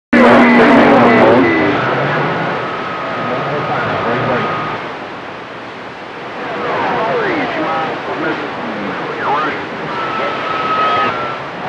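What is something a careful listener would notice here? Whistling tones and chirping signals glide up and down over a radio receiver's static.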